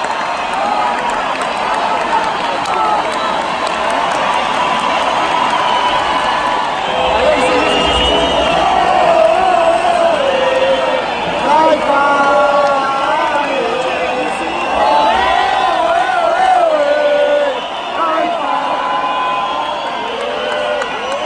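A large crowd sings along loudly in a big echoing arena.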